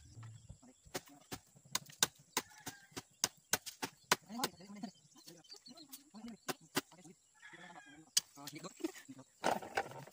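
A machete chops at dry branches with sharp knocks.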